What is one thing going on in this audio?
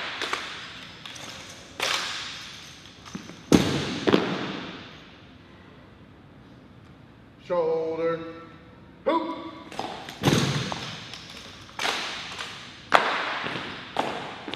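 Rifles and boots strike the hard floor with sharp bangs that echo through a large hall.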